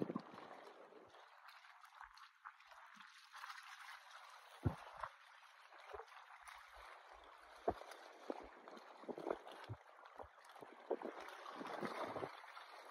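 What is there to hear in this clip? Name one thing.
Small waves lap and splash gently outdoors.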